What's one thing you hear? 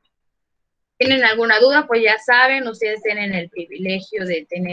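A young woman speaks calmly and clearly over an online call.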